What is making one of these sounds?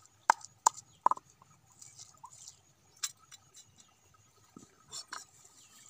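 Small stones clink against a metal plate.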